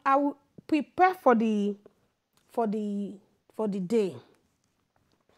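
A woman speaks calmly and closely into a microphone, in short phrases.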